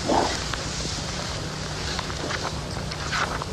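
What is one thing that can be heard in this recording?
Magazine pages rustle as they are handled.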